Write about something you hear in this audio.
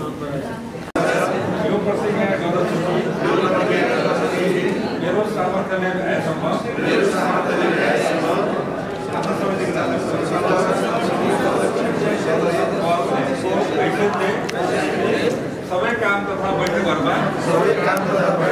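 A group of men and women recite in unison.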